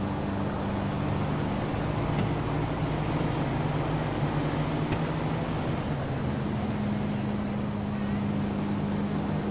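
A locomotive engine idles with a steady low rumble.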